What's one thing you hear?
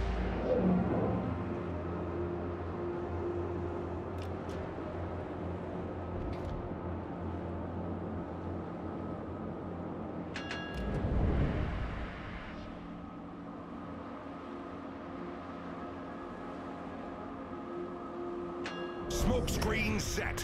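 Naval guns fire with deep booming blasts.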